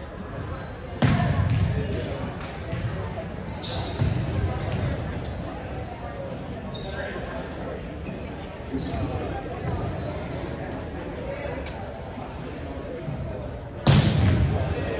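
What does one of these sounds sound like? A volleyball is hit hard in a large echoing gym.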